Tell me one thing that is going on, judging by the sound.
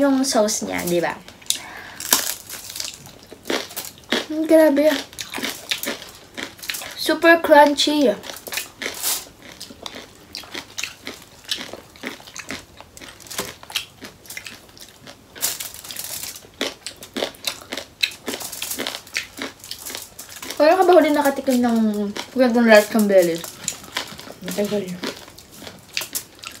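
Crispy food crackles and crunches as it is torn and chewed.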